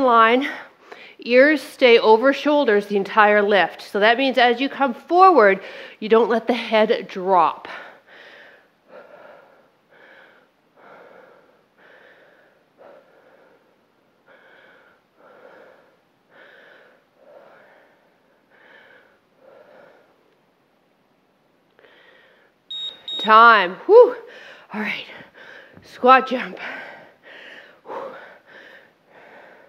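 A woman speaks with energy into a microphone, close by.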